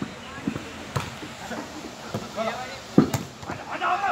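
A volleyball is struck with sharp thumps.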